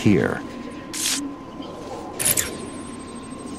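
An electronic scanner gives short high tones.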